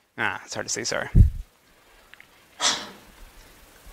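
A man speaks through a microphone, lecturing in a large room.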